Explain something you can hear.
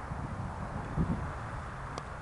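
A cricket bat hits a ball with a sharp knock.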